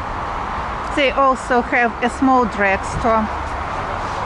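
A man speaks briefly nearby outdoors.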